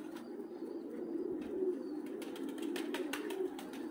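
Pigeon wings flutter and flap.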